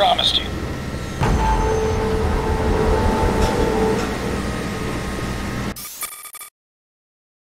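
Industrial machinery rumbles and hums steadily.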